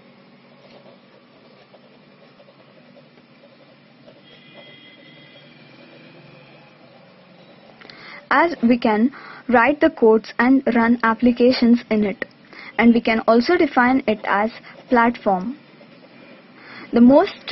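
A felt-tip pen scratches softly on paper.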